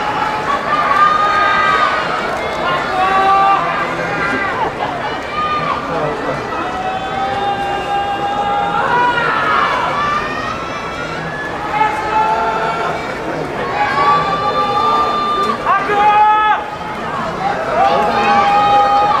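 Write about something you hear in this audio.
Spectators shout loudly.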